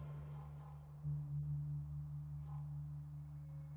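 A game menu gives short electronic chimes as an option is selected.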